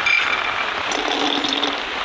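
Peanuts clatter into a metal wok.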